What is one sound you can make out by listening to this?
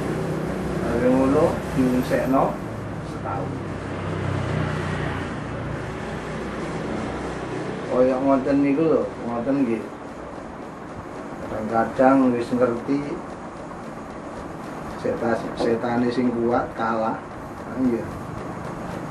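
A middle-aged man speaks in short bursts with pauses between them.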